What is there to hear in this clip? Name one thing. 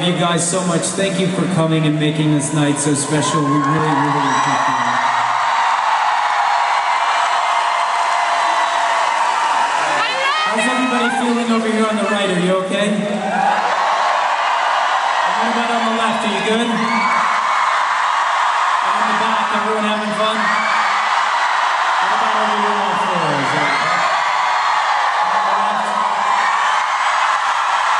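A man sings loudly through a microphone and loudspeakers.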